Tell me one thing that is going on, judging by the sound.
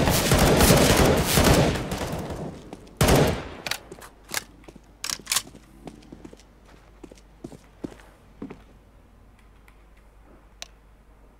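Footsteps tap quickly on stone.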